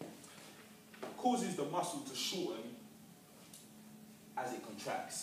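A young man speaks calmly in a room with a slight echo.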